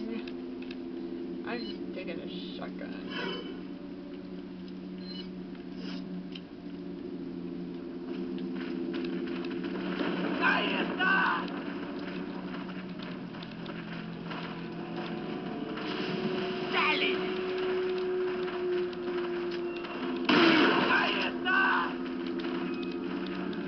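Eerie video game music hums steadily through a television speaker.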